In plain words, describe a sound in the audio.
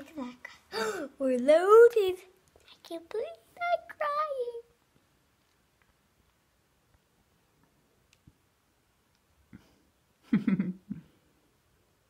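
A young boy speaks close by with whiny, wavering expression.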